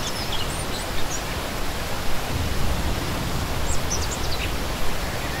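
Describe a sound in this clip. A shallow stream rushes and gurgles steadily over rocks.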